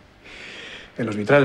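An older man answers in a low voice.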